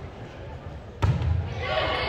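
A volleyball is struck hard with a hand.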